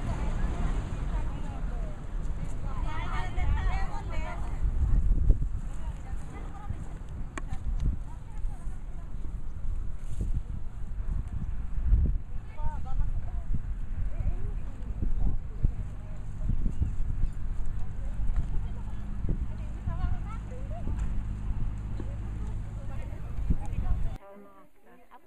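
A crowd of women chatter outdoors.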